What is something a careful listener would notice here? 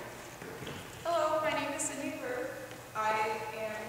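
A young woman speaks cheerfully in an echoing hall.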